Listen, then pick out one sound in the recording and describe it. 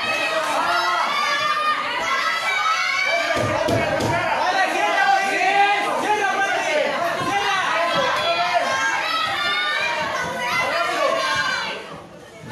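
Boxing gloves thump against bodies.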